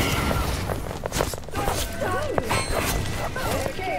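Blades clash and strike in quick bursts.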